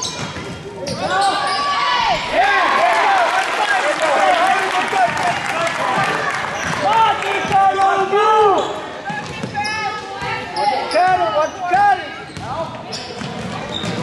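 Spectators cheer and shout in a large echoing gym.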